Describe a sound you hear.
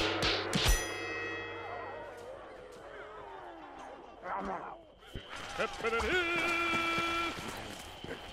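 Electronic game sound effects chime and ring out.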